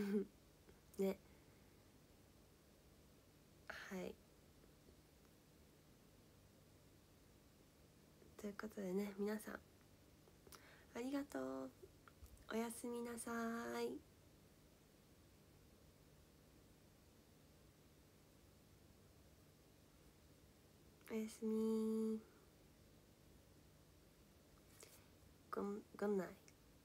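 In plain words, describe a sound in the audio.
A young woman speaks softly and casually, close by, in short bursts with pauses.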